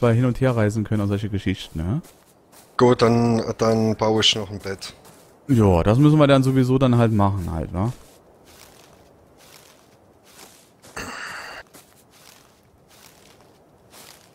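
Footsteps pad softly on sand.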